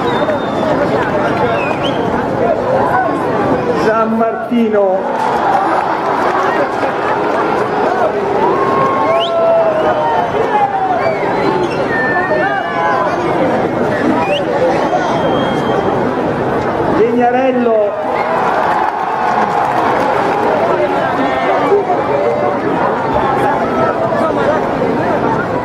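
A large outdoor crowd chatters and calls out in a steady, busy murmur.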